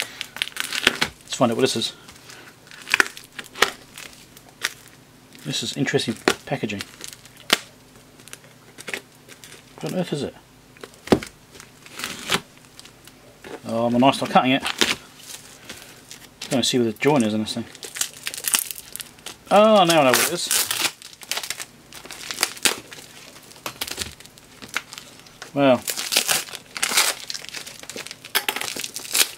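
A padded envelope rustles and crinkles as it is handled.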